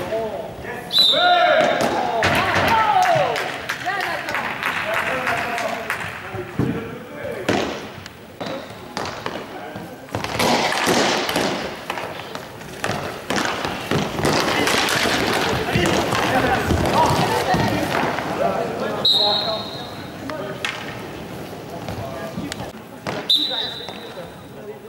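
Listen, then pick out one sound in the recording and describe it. A referee's whistle blows in short sharp blasts.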